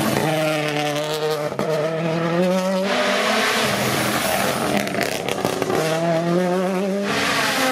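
Tyres hiss and crunch on tarmac as a rally car passes.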